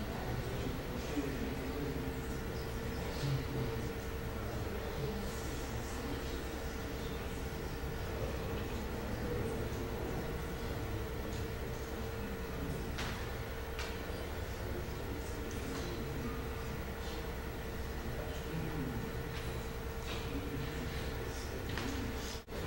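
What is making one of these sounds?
A man speaks steadily at a distance in a large echoing hall, heard through a microphone.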